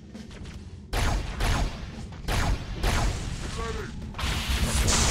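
Guns fire in loud bursts.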